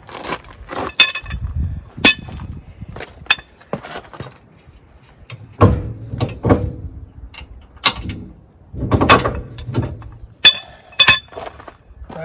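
Metal parts clank and clink sharply.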